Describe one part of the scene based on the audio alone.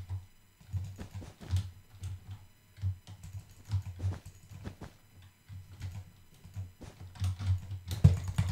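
Blocks thud softly as they are placed one after another.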